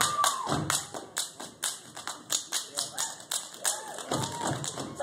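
Feet stomp hard in a fast, steady rhythm on a wooden stage.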